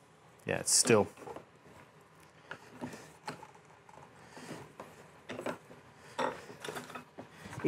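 A tool scrapes against wood.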